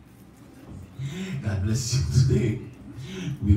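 A man preaches with animation through a microphone.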